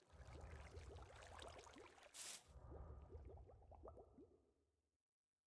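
Water gently flows and ripples.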